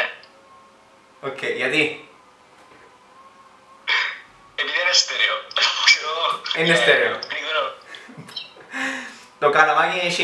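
A young man laughs over an online call.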